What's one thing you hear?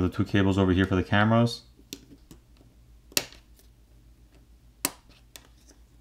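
A plastic pry tool clicks against a phone's parts.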